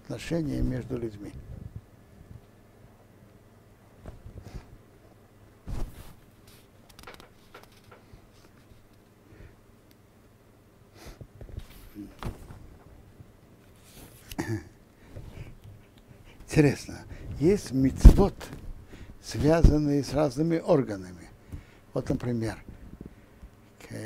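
An elderly man speaks calmly into a close microphone, with pauses.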